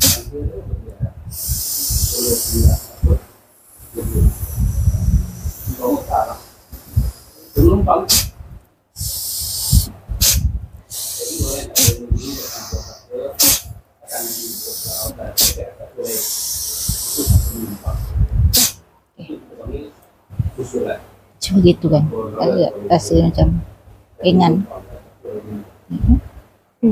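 A younger woman talks briefly in reply.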